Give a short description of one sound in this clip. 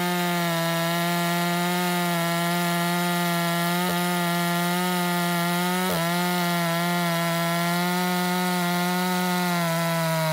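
A small chainsaw engine drones steadily at high revs, close by.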